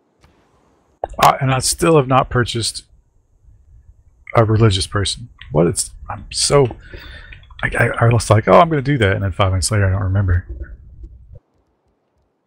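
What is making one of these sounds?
A man talks with animation into a headset microphone, heard close.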